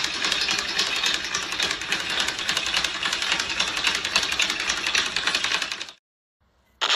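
A speed bag rattles rapidly against its board as a man punches it.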